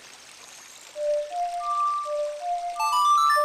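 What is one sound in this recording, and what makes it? An ocarina plays a short melody.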